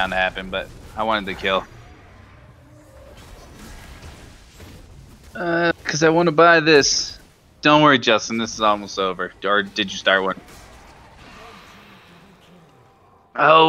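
Video game spells crackle and blows clash in a fight.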